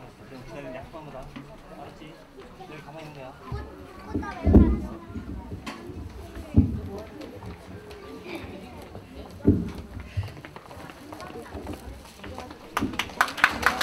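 A woman speaks into a microphone over loudspeakers.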